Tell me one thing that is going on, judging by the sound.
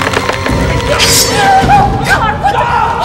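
A woman screams in alarm.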